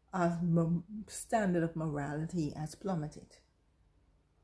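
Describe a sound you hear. A woman speaks with animation close to a phone microphone.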